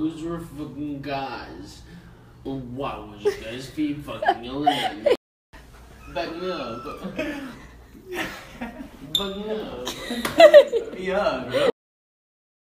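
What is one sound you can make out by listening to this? Two young men talk and laugh nearby.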